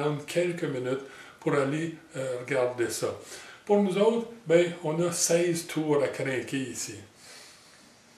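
A middle-aged man talks calmly, close to the microphone.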